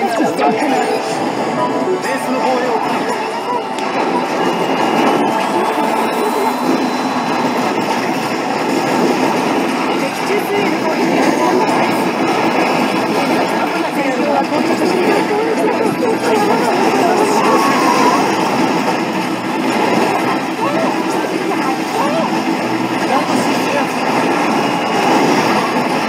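Game music plays loudly through an arcade machine's speakers.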